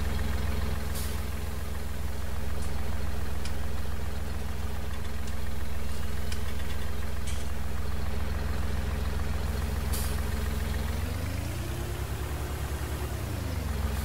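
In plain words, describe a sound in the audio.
A tractor engine idles with a steady low rumble, then revs up and down.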